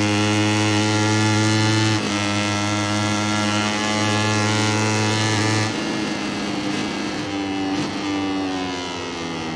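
A motorcycle engine roars at high revs, shifting gears, then drops in pitch as the bike slows for a bend.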